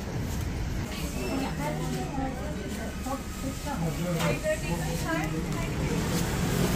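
Men and women chatter in a busy, crowded room.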